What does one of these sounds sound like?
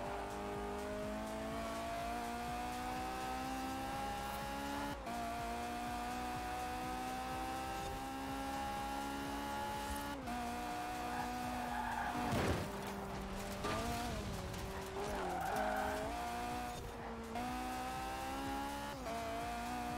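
A car engine roars at high revs, rising in pitch and dropping with each gear change.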